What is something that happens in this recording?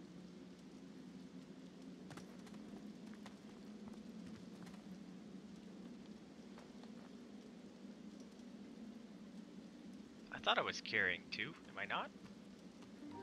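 Soft interface clicks sound as items are sorted in a game menu.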